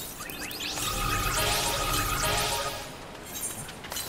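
A magical chime shimmers and sparkles.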